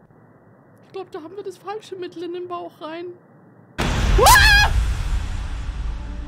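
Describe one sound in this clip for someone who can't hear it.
A young woman speaks excitedly close to a microphone.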